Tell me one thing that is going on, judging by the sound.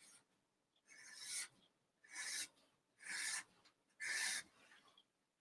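A marker squeaks in short strokes on paper.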